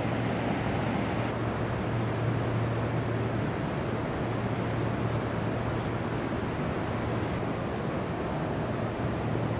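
Water flows and rushes steadily nearby.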